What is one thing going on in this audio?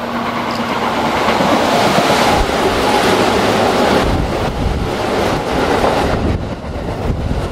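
A train rushes past close by with a loud roar.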